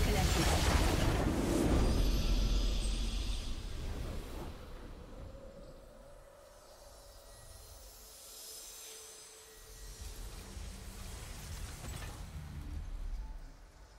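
A triumphant fanfare swells and fades.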